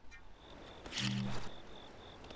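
A video game chime rings out briefly.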